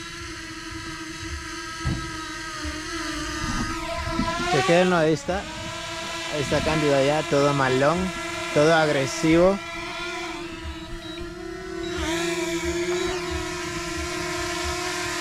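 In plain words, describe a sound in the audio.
A drone's propellers whine steadily and rise in pitch as it climbs.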